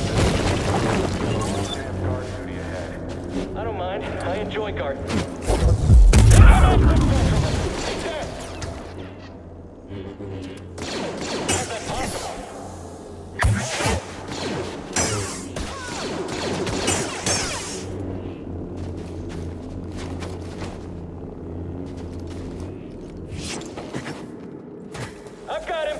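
An energy blade hums and whooshes as it swings.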